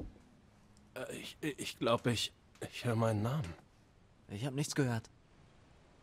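A young man speaks hesitantly and quietly, close by.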